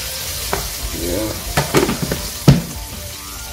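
A utensil clinks against a pan.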